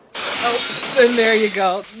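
Glass shatters with a crash.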